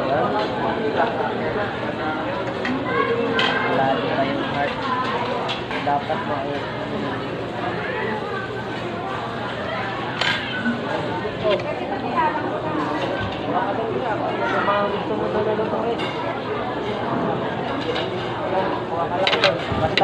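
Cutlery and dishes clink now and then.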